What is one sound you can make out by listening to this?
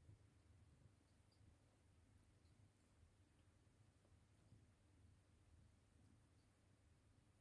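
Newborn kittens squeak faintly.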